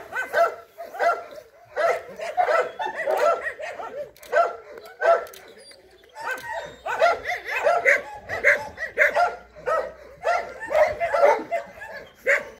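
A dog sniffs at the grass close by.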